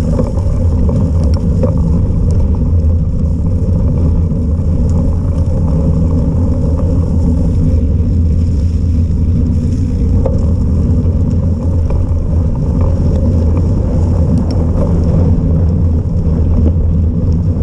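Wind rushes loudly and steadily past a moving rider.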